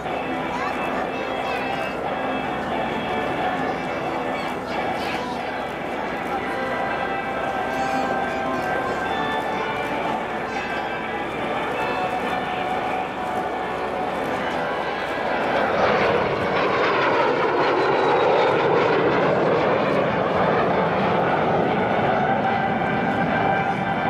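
A jet engine roars overhead, swelling loudly as the plane passes close and the pitch sweeps down.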